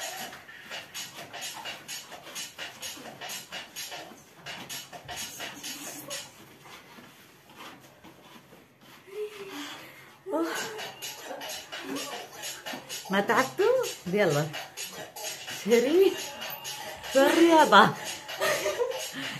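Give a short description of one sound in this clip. Bare feet thump on the floor as girls dance.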